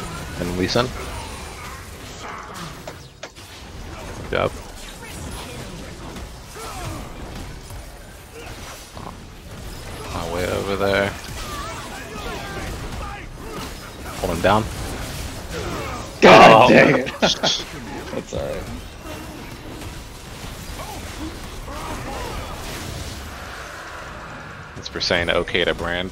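Fire spells burst and crackle in a video game.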